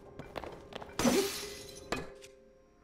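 A weapon breaks with a bright shattering burst.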